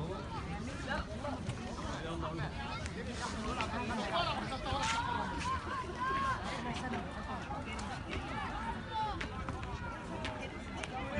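Boys shout and call to each other across an open outdoor field.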